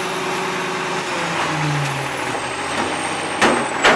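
A bin clatters as it is tipped into a truck.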